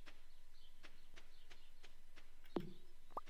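Quick footsteps patter on dry ground.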